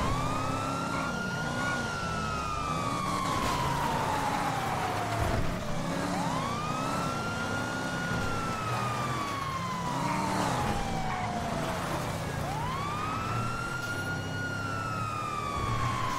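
A siren wails, slowly rising and falling.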